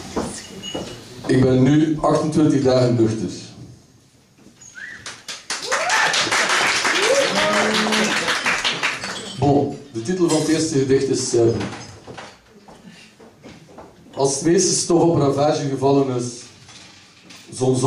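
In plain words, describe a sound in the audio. A young man speaks into a microphone, reading out with pauses, heard through a loudspeaker in a room.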